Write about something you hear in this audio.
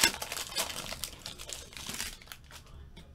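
Foil wrapping crinkles and tears as a pack is opened.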